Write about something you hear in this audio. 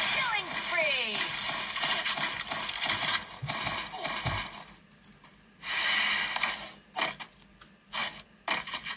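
Gunfire and game effects play from a phone game.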